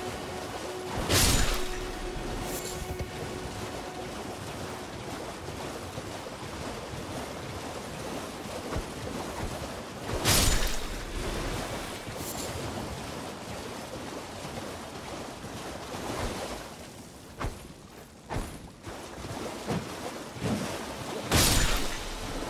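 A heavy splash bursts up loudly.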